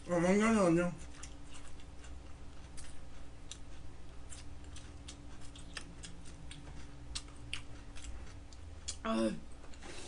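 A young woman slurps noodles close to a microphone.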